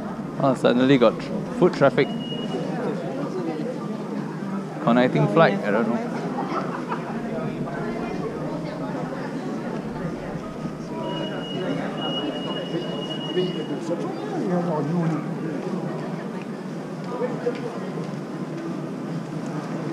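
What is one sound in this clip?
A crowd murmurs in a large, echoing hall.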